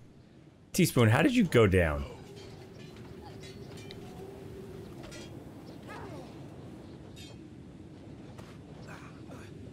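Weapons clash and clang in a fight.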